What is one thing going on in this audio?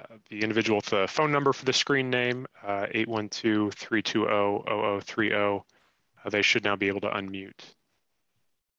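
A man speaks calmly through a headset microphone over an online call.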